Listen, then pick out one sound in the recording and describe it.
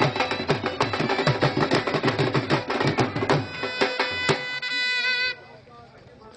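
A drum is beaten loudly in a fast rhythm.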